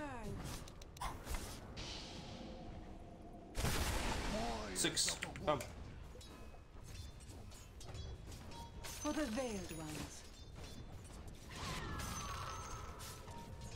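Game sound effects of spells and clashes play.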